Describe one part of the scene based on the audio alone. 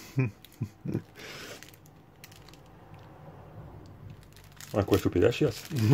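Sweet wrappers crinkle in a hand.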